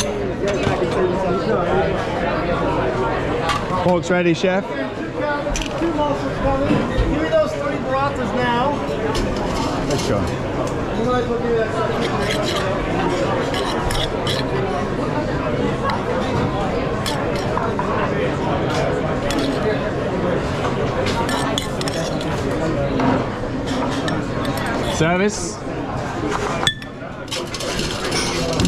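Plates and metal pans clink on a counter.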